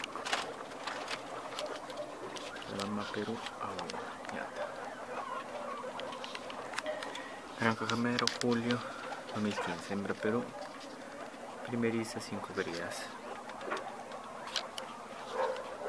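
Guinea pigs nibble and rustle on corn husks.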